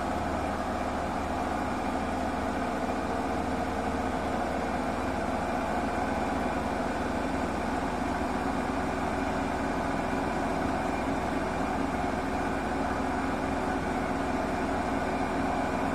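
A washing machine drum spins fast with a steady whirring hum.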